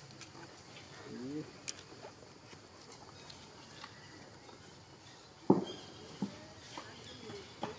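A baby monkey squeaks and whimpers close by.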